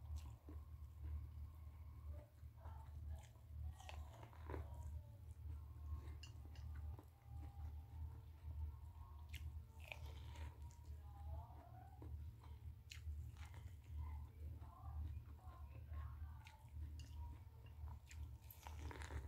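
A woman bites and chews corn on the cob up close, with crunchy, wet sounds.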